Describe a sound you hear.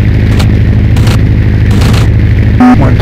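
Machine guns fire in short bursts.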